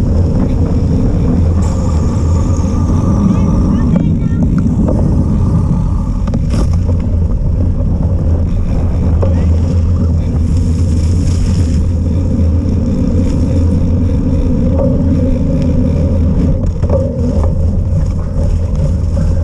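Wind rumbles hard against a microphone outdoors.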